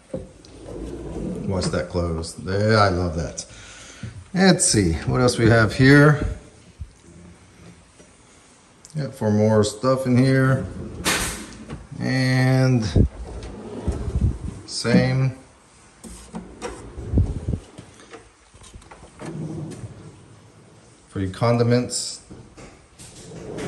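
Wooden drawers slide open on their runners.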